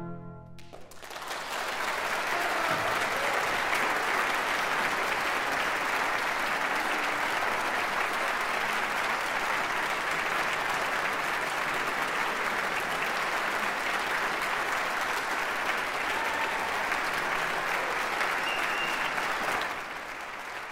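A large audience applauds loudly in a concert hall.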